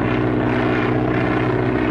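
An airplane engine drones steadily.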